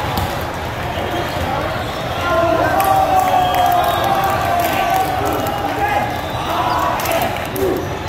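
A crowd chatters and cheers throughout a large echoing hall.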